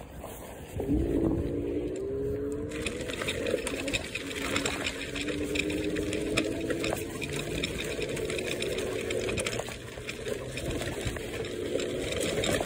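Tyres roll over loose gravel.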